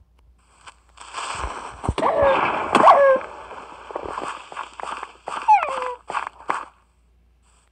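Wolves growl and yelp while fighting.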